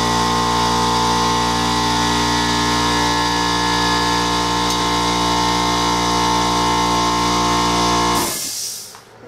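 An air compressor runs with a steady loud hum, then shuts off.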